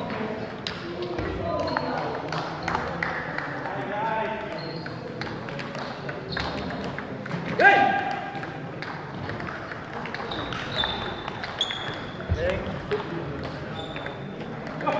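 A table tennis ball clicks back and forth across a table and off the bats.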